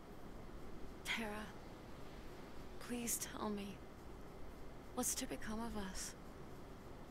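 A young woman speaks softly and sadly.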